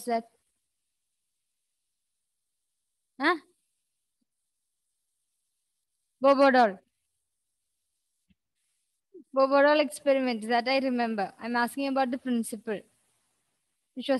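A young woman speaks into a headset microphone in short bursts, calmly and close.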